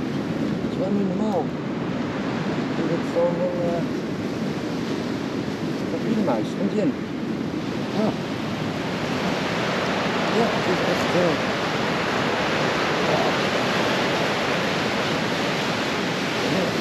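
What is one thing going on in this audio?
Waves crash and wash over rocks nearby.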